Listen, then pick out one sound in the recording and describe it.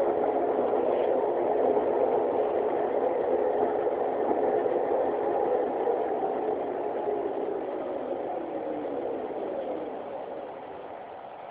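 A bus motor whines loudly and winds down as the bus slows to a stop.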